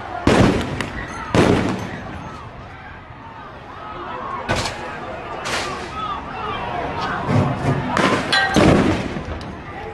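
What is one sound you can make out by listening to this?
Loud bangs go off outdoors and echo.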